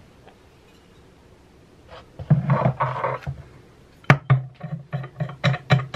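A metal clamp clanks against a guitar body as it is set in place.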